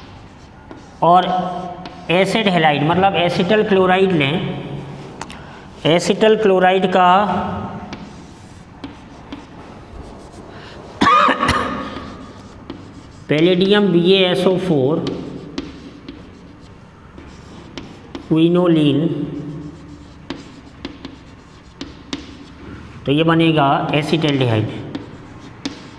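A man speaks clearly in short phrases, close by.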